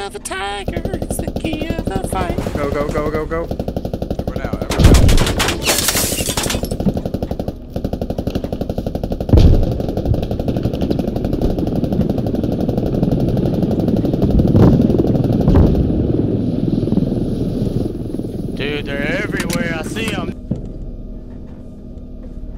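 A helicopter's rotor thumps steadily and rapidly.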